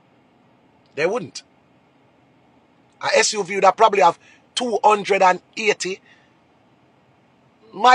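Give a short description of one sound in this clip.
A man speaks with animation close to a phone microphone, in bursts with pauses.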